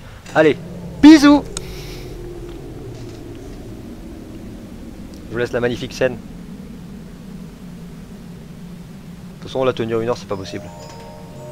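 A young man talks loudly in short bursts into a microphone.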